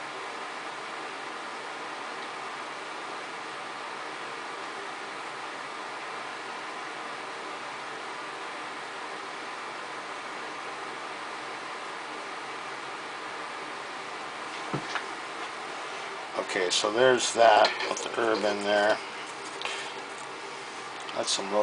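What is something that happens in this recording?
An electric device hums steadily.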